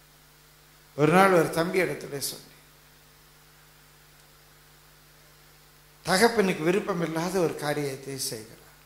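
An elderly man speaks loudly and with feeling into a microphone, in short bursts.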